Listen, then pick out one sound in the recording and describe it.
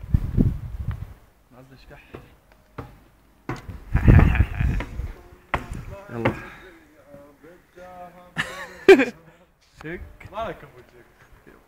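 A young man talks and laughs close by.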